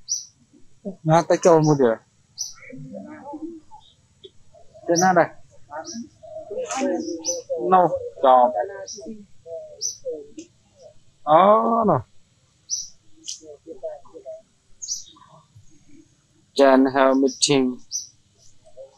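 Monkeys chatter and squeal nearby.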